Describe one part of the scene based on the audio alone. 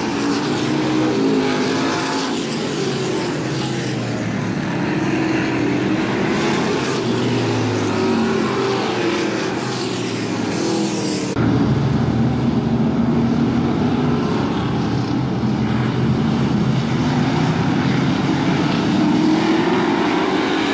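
Race car engines roar and drone past at high speed.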